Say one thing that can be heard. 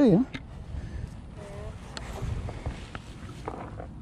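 A fishing rod is set down on grass with a soft rustle.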